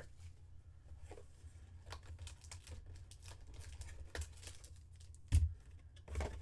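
A cardboard box is torn open and its flaps are pulled.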